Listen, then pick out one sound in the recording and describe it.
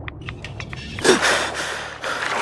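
A swimmer splashes while surfacing.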